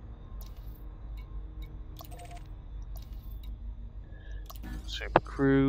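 Menu selections click and beep softly.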